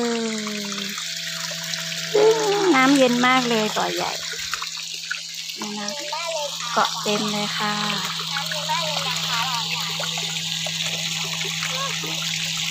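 A stream of water sprays and splashes steadily into a pond.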